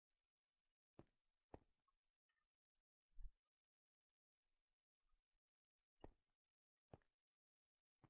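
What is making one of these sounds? Stone blocks clack softly as they are placed.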